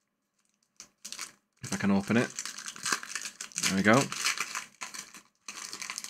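Foil wrapping crinkles as it is torn open.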